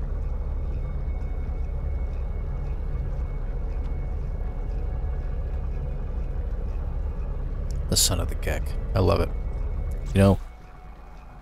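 A spaceship engine hums low and steady, then cuts off.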